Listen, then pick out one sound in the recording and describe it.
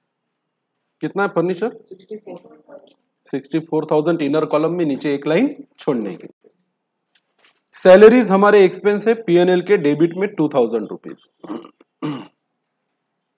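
A man talks calmly and explains into a close microphone.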